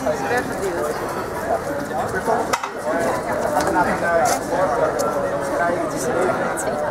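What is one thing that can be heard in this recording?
A crowd of men and women chatter all around, close by, outdoors.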